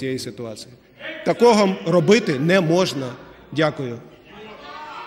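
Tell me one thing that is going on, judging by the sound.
A middle-aged man shouts angrily into a microphone.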